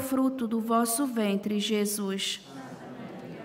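A man sings a chant through a microphone in a large echoing space.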